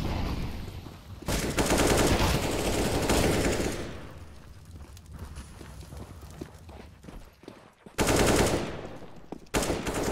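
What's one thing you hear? Rifle shots ring out in bursts.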